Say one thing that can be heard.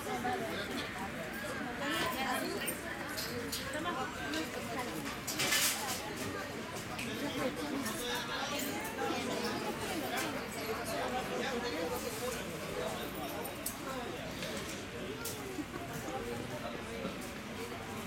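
A crowd of men, women and children chatters nearby.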